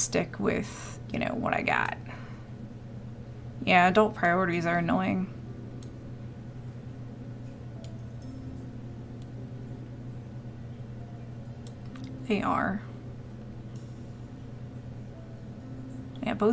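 A woman speaks casually into a close microphone, in short bursts with pauses.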